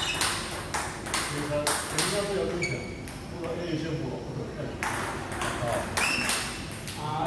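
A table tennis ball clicks back and forth across a table.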